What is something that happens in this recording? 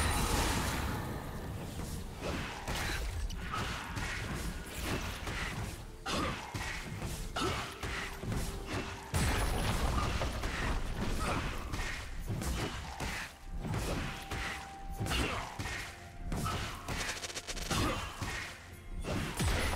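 Game spells whoosh and hits clash in a fast fight.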